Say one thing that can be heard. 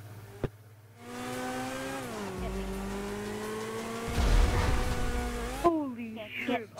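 A car engine roars steadily, its pitch gliding down and then rising.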